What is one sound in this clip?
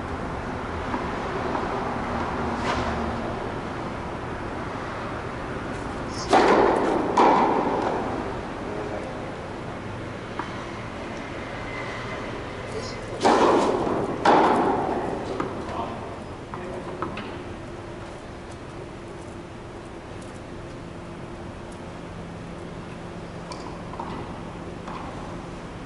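A tennis ball bounces on a hard court.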